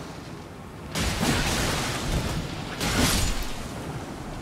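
Sword blows whoosh and crash in bursts.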